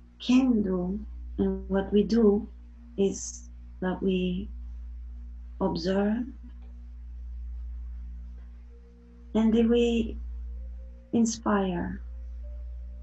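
A young woman speaks calmly and softly over an online call, with pauses.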